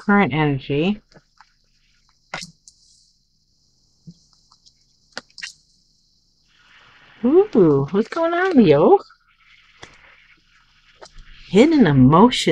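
Playing cards slide and tap softly on a tabletop.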